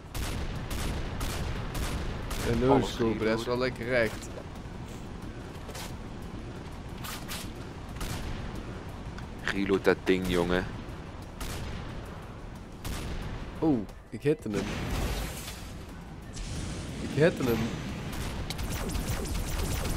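A game gun fires with sharp bangs.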